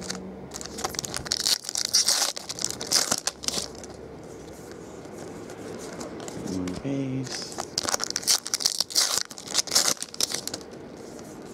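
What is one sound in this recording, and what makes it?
Foil wrappers crinkle and tear as packs are opened.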